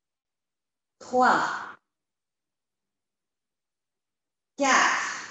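A woman speaks briefly and calmly through a microphone.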